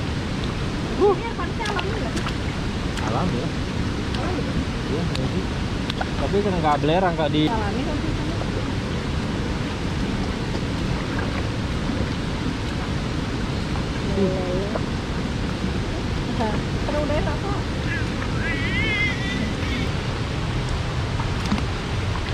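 Water flows and splashes steadily outdoors.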